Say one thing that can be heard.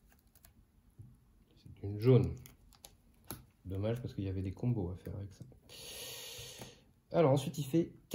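Playing cards tap and slide softly on a table.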